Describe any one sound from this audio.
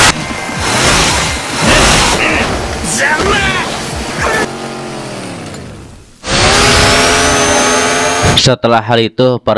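A chainsaw roars and revs loudly.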